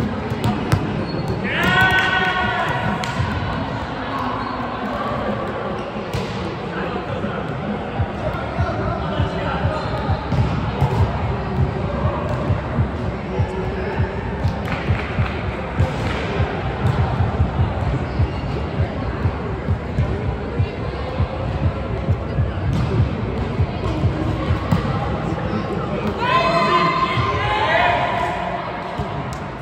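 A volleyball is hit back and forth with sharp slaps in a large echoing hall.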